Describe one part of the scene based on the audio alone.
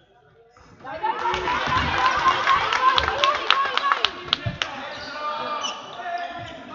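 Spectators cheer and shout loudly in the hall.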